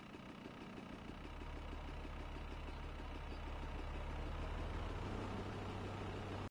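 A car engine rumbles closer and drives past.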